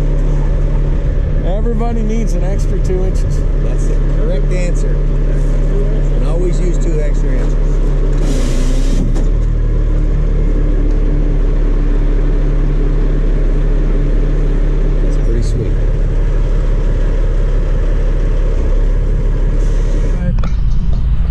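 A truck engine idles with a low, steady rumble.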